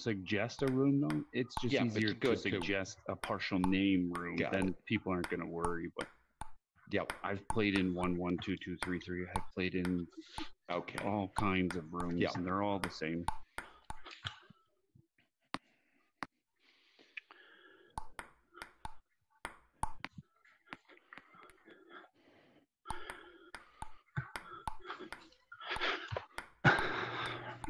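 A table tennis ball clicks back and forth off paddles and the table.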